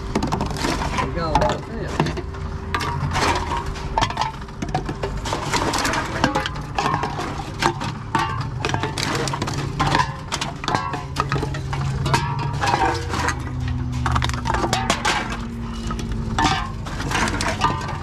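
Empty cans and bottles clatter and clink as they are handled.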